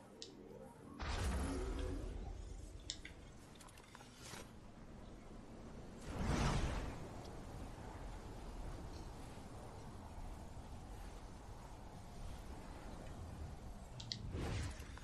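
A loud rushing whoosh of wind surges and swirls, rising and easing again.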